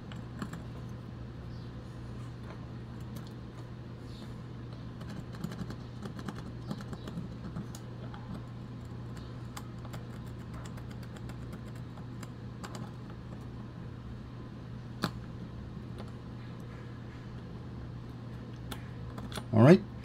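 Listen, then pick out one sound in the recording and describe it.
A metal tool scrapes and clicks against small metal parts.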